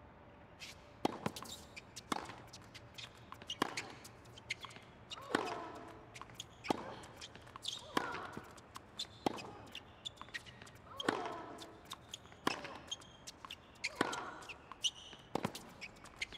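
Tennis rackets strike a ball back and forth in a rally.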